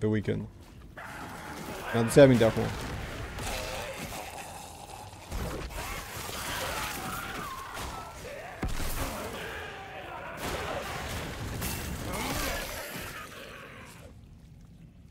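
Game spells crackle and clash with magic effects.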